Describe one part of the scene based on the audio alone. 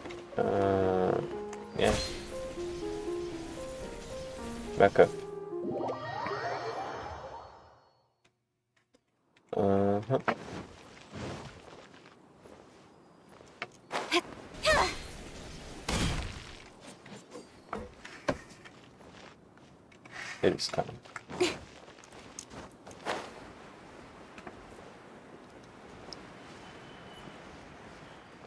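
Video game effects whoosh, chime and clatter.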